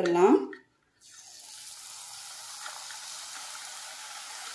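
Hot oil sizzles softly in a pan.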